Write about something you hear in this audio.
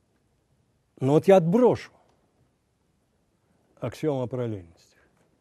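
An elderly man speaks calmly into a microphone, in short phrases.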